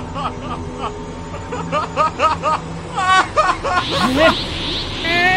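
A man speaks with animation in a high, mocking voice.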